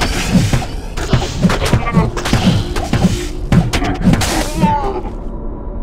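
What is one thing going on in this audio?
Monsters cry out.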